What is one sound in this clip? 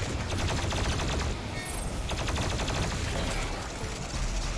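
A plasma gun fires rapid crackling electric bursts.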